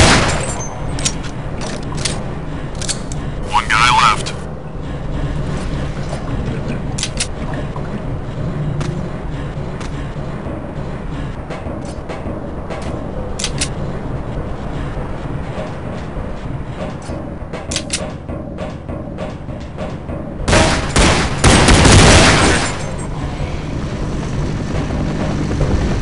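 Footsteps clank on metal grating.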